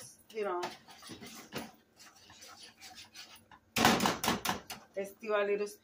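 A spoon scrapes and clatters against a pan.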